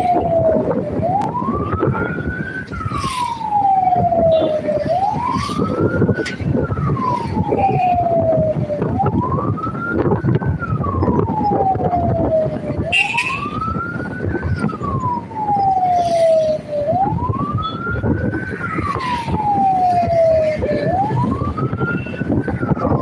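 A car drives along a road with steady road and engine noise.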